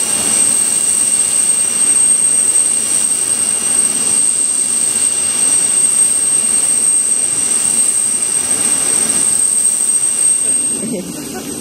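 A jet engine whines steadily nearby with a high, piercing tone.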